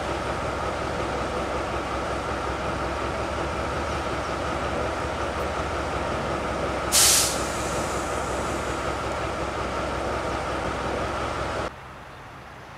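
A diesel locomotive idles with a steady, low rumbling hum.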